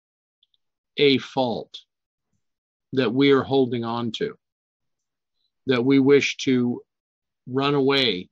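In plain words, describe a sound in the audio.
An older man speaks with animation over an online call, in short bursts with pauses.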